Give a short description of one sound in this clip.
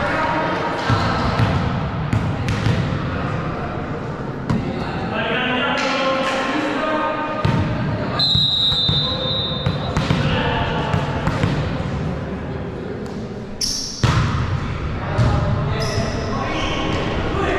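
Young players call out and chatter in a large echoing hall.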